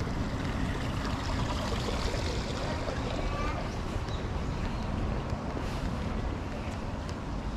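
Shallow water trickles gently in a stream.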